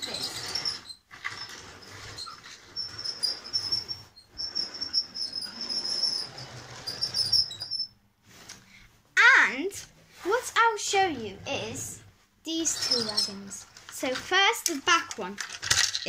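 A toy train whirs along its track.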